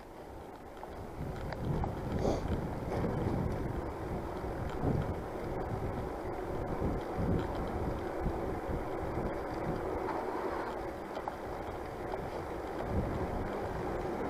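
Wind rushes and buffets past while riding along a street.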